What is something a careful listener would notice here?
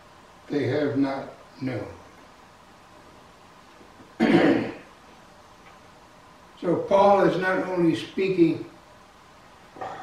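An elderly man preaches with feeling into a microphone, in bursts between pauses.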